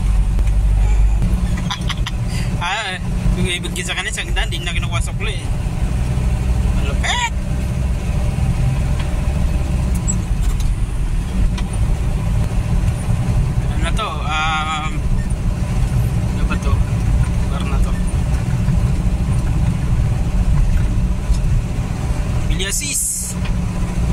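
A vehicle engine rumbles steadily from inside the cab.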